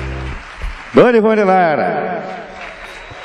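A man sings a long, falling note through a microphone in a large hall.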